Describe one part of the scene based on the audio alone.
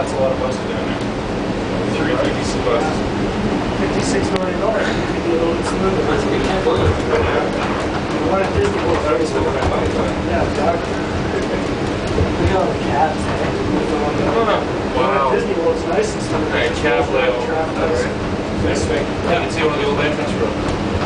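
Wheels rumble and clatter over the rail joints.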